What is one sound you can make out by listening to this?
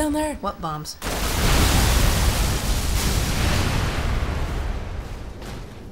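A large explosion booms and rumbles away.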